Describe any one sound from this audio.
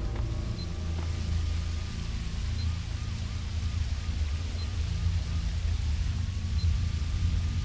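A heart monitor beeps at a slow, steady pace.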